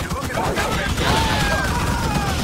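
An explosion bursts with a deep boom.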